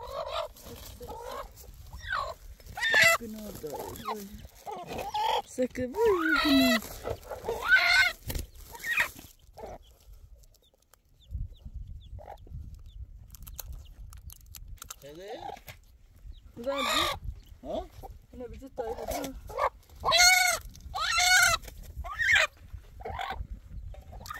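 Chicks peep shrilly, close by.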